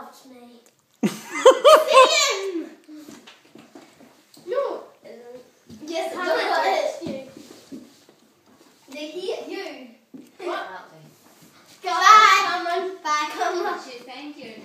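Children shriek and giggle excitedly.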